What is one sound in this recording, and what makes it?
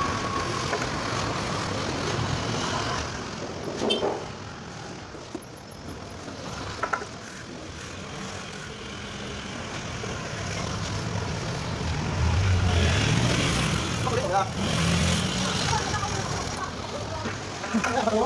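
Motorbikes drive past with a low engine hum.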